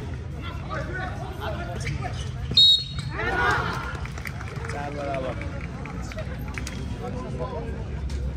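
A basketball bounces on the hard court.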